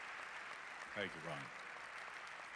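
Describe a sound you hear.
An elderly man says a few words into a microphone.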